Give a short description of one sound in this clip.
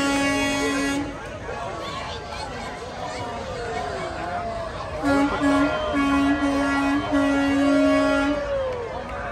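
A truck horn honks loudly in repeated bursts.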